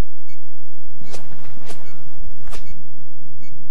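Footsteps tap on a hard floor indoors.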